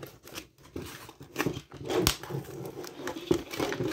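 A sheet of paper rustles as hands pull it out.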